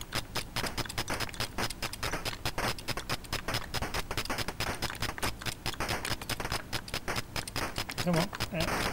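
Rapid electronic gunfire bursts from a retro video game.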